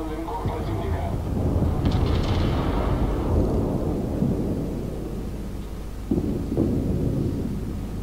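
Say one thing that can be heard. Shells crash into the sea with heavy booming splashes.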